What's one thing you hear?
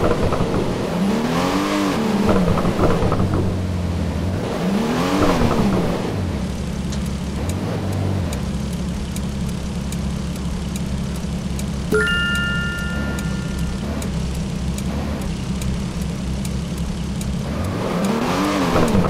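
A car engine hums steadily and revs up and down now and then.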